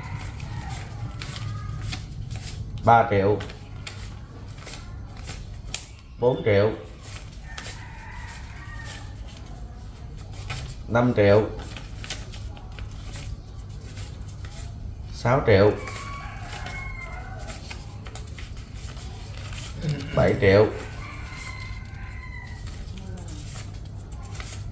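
Banknotes rustle and flick as they are counted.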